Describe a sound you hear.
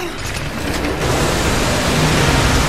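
Water rushes and surges loudly.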